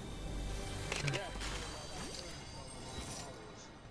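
A chest creaks open with a shimmering jingle.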